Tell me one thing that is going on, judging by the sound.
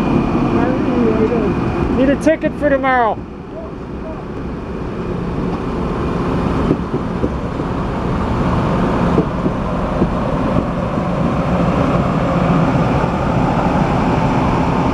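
A passenger train rolls past close by with a steady low rumble.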